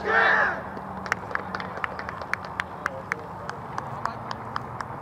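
Young men clap their hands.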